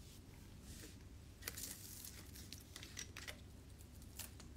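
A plastic water bottle crinkles in a young man's hands.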